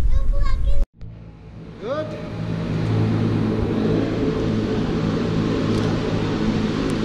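Cable car machinery hums steadily.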